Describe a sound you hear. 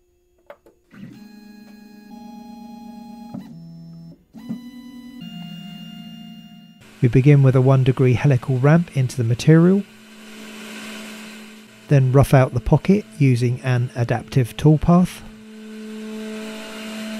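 A milling machine's spindle whirs steadily.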